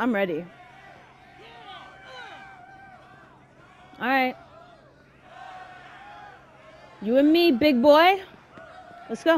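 A crowd of men cheers and jeers loudly in an echoing hall.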